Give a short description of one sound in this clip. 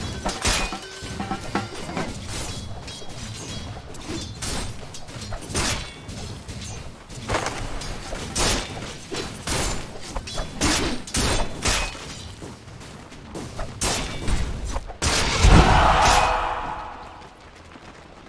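Game weapons clash and spells burst in a busy fight.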